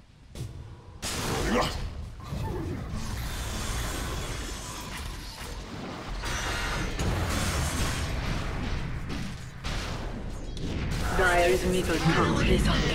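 Fantasy spell effects whoosh and boom during a fight.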